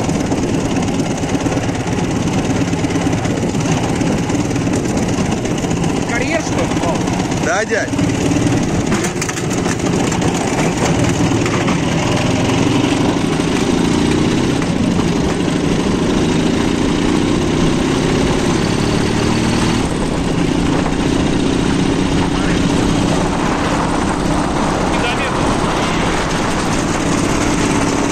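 A motorcycle engine chugs steadily up close.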